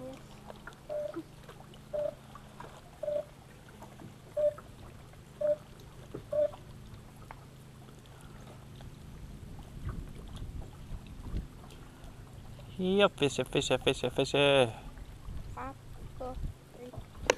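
Water laps gently against a small boat.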